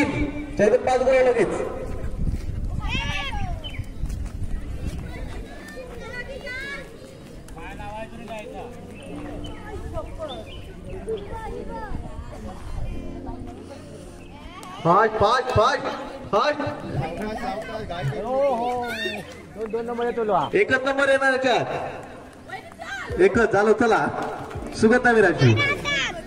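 A group of women sing a folk song outdoors.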